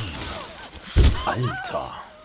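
A body thuds heavily onto the ground.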